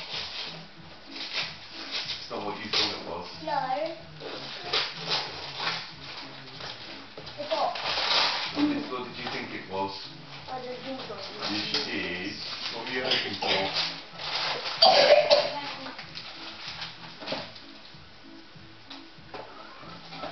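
Wrapping paper rustles and tears as a boy unwraps a present.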